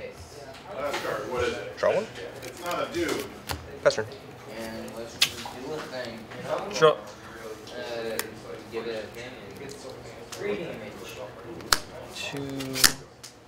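Cards tap and slide onto a mat.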